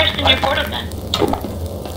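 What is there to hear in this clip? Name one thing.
A fire burns and crackles.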